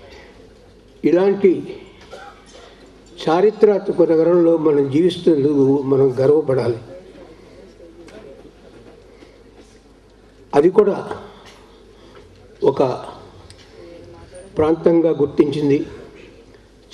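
A man speaks slowly through a loudspeaker in a large echoing hall.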